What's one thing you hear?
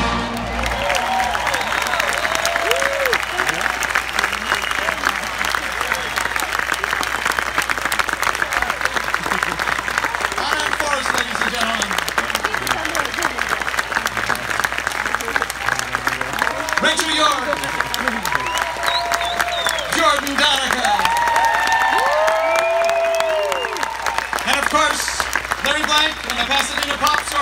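People in a crowd cheer and whistle.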